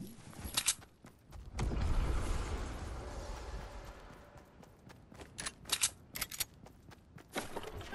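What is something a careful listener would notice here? Footsteps patter quickly on pavement.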